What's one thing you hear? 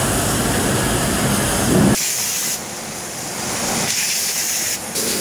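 An automatic bread bagging machine whirs and clatters.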